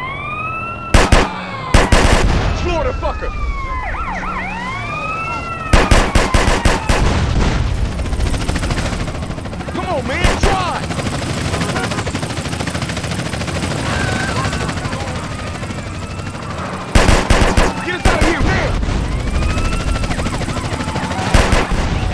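Explosions boom loudly several times.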